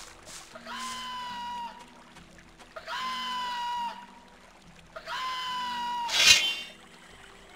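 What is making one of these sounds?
A small creature squawks loudly, again and again.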